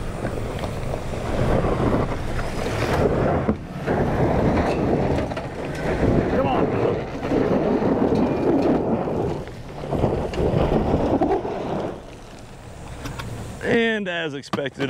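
Tyres spin and crunch on loose gravel.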